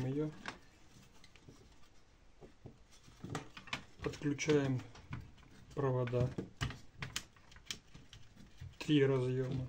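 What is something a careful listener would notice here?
Small hard parts click and tap as a circuit board is handled.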